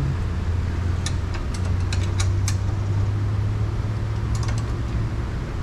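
Metal tools clink and click against a bolt on a metal rack.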